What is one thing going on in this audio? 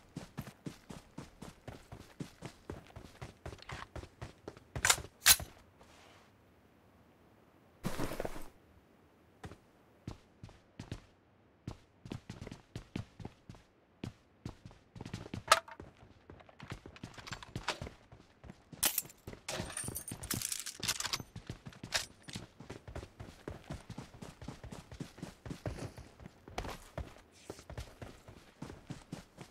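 Footsteps patter quickly and steadily.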